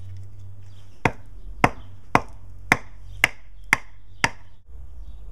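A wooden baton knocks sharply on a knife blade, splitting wood.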